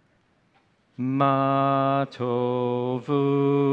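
A man chants in a loud, sustained voice through a microphone, pausing briefly between phrases.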